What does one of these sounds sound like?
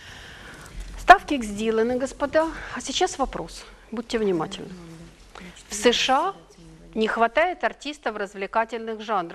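A middle-aged woman reads aloud clearly, close by.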